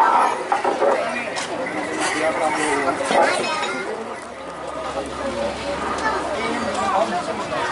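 A crowd of men shouts and cheers excitedly outdoors.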